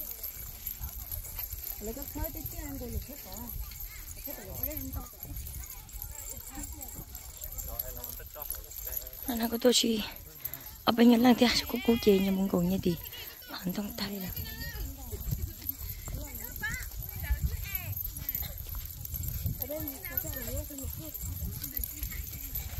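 Young women chat and call out to each other nearby.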